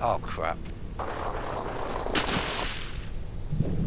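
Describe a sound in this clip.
A body splashes loudly into water.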